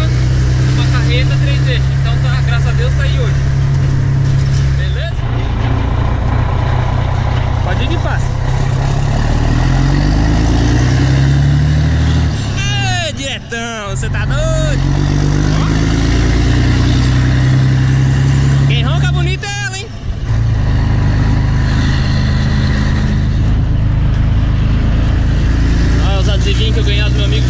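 A heavy truck engine rumbles steadily, rising and falling in pitch as it shifts gears.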